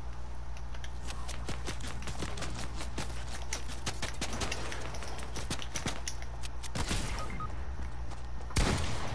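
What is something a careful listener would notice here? Rapid clicks and thuds snap in quick succession.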